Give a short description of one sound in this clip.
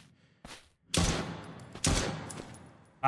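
Gunshots fire sharply, one after another.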